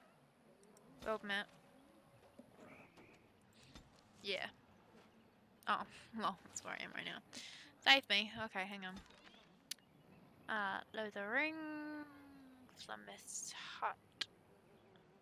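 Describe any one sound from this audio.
A young woman talks with animation close to a headset microphone.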